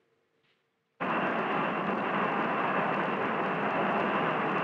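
A jet aircraft's engines roar loudly and steadily.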